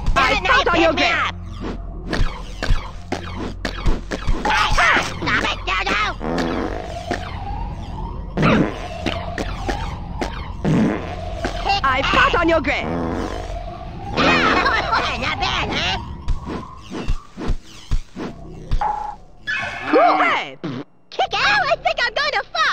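Video game weapons fire and zap in quick bursts.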